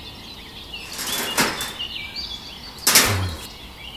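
A plastic toy cage knocks as it is lifted off a toy trailer.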